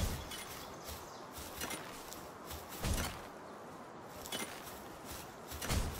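Footsteps patter on grass.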